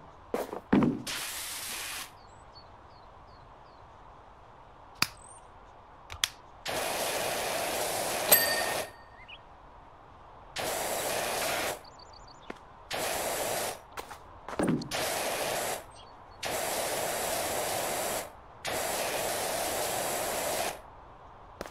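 A pressure washer sprays water in hissing bursts.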